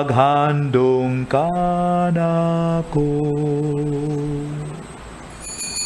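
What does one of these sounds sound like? A man chants in a sustained singing voice through a microphone.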